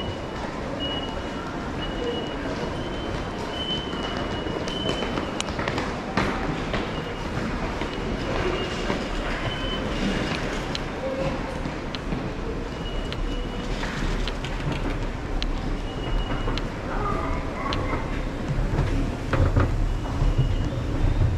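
A repeated high electronic chime sounds over a loudspeaker.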